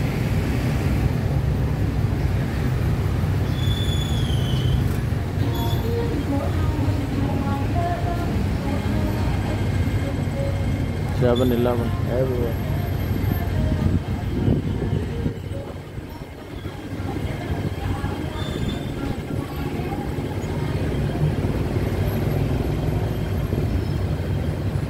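An engine rumbles steadily from a vehicle riding along a busy street.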